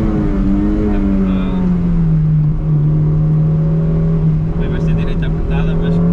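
A car engine hums steadily at high revs, its pitch dipping slightly then holding.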